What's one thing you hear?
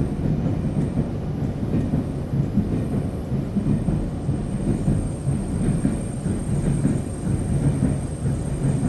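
A train car rumbles steadily as it runs along the tracks.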